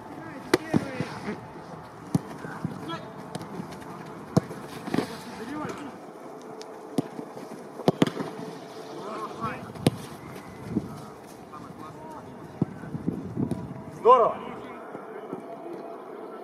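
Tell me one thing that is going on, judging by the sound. A goalkeeper dives and lands on the grass with a thump.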